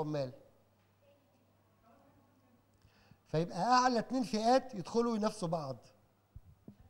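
A man speaks into a microphone with animation, heard through loudspeakers in an echoing hall.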